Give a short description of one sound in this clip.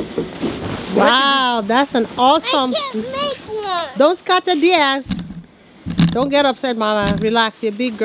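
Children talk and call out excitedly.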